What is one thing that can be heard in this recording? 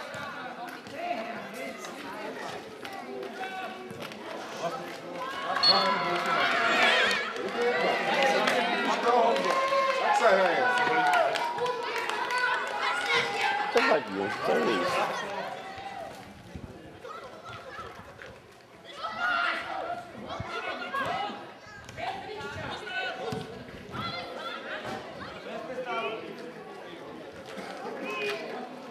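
Children shout to each other outdoors during a football game.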